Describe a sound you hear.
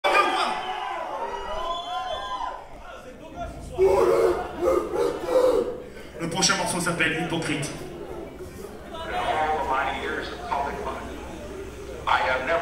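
A man sings loudly into a microphone through loudspeakers in a large echoing room.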